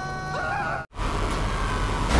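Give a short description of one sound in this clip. A tank engine rumbles as the tank drives down a road.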